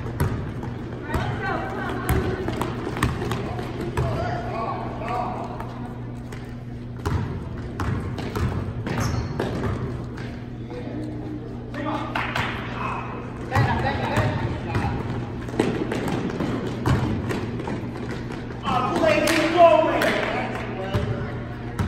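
Spectators and players call out and shout in the echoing gym.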